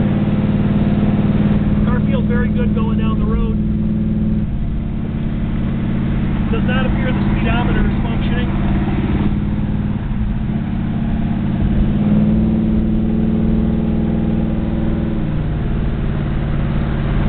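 A car engine revs up and eases off as the car drives along.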